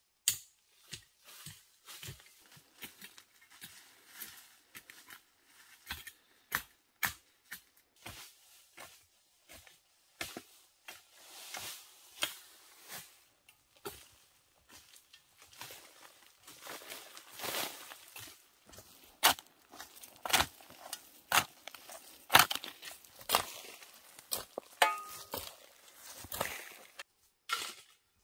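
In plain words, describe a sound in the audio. A tool chops and scrapes into soil with repeated dull blows.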